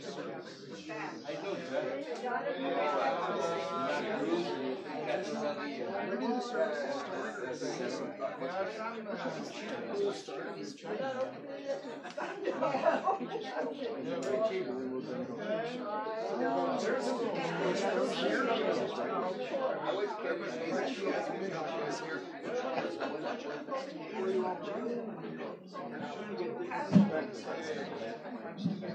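A crowd of adults chatter and talk over one another.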